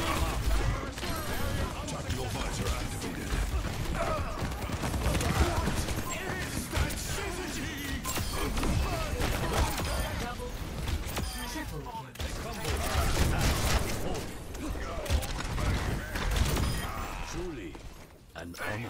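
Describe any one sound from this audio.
Gunfire and energy blasts crackle and boom in a fast, chaotic fight.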